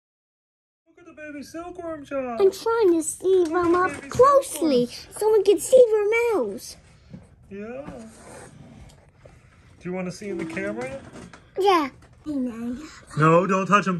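Young children talk and exclaim excitedly up close.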